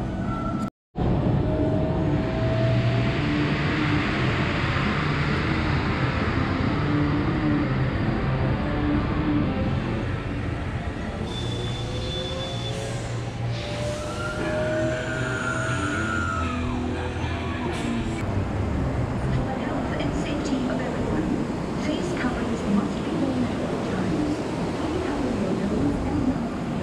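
Footsteps scuff on pavement outdoors.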